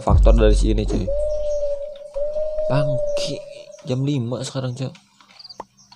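A young man talks into a headset microphone with animation.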